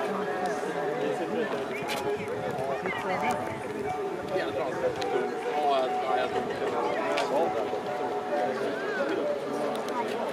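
Running shoes patter on asphalt.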